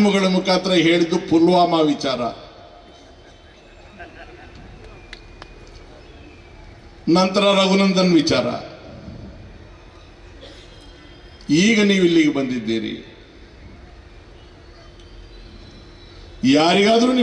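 An elderly man speaks forcefully into a microphone through loudspeakers, in bursts with pauses between.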